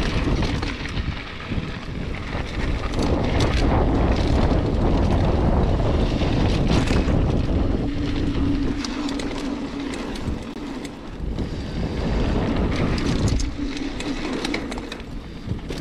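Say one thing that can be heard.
Wind buffets a microphone loudly outdoors.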